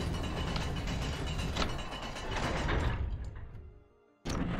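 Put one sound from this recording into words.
A metal panel slides shut with a grinding clank.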